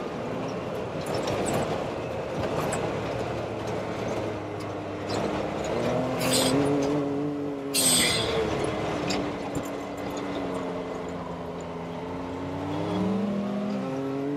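Tyres rumble and crunch over a dirt track.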